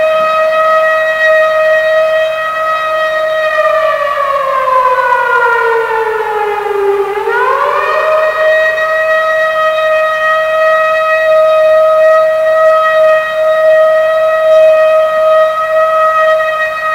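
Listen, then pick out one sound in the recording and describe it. Electronic dance music plays, with a steady synth tone that slides down in pitch and snaps back up.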